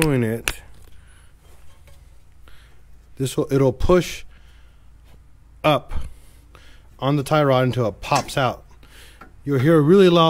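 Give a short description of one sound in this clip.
Metal brake parts clink as hands work on them.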